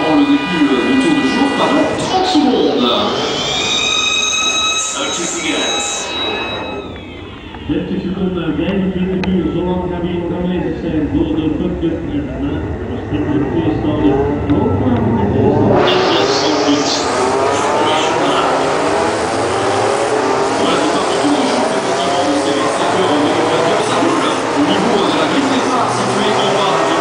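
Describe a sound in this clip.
Racing car engines rev up, rising in pitch as the cars speed past.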